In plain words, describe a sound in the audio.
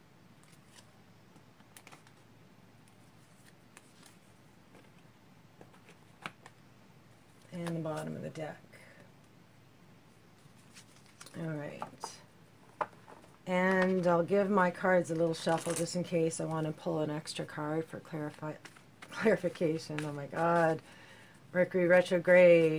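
Playing cards shuffle and tap softly as they are handled.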